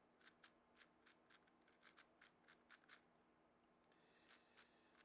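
A puzzle cube clicks and clacks rapidly as it is turned by hand.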